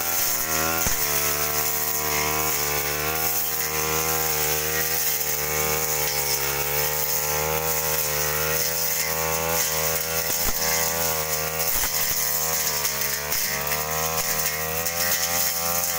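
A petrol brush cutter whines loudly at high revs, its pitch rising and dipping.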